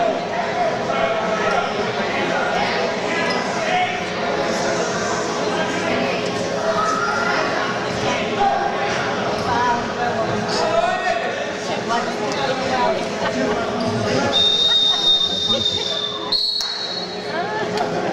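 A crowd of young men and women shouts and cheers loudly in an echoing hall.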